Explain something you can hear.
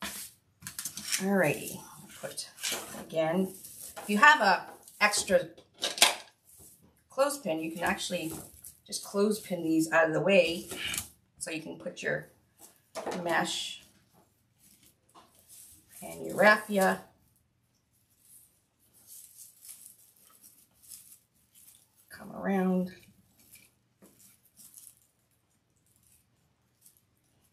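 Dry straw and stiff mesh ribbon rustle and crinkle as they are handled.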